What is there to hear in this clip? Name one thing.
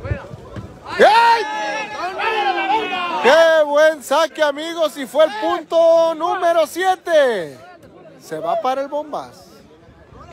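A man shouts loudly and excitedly nearby.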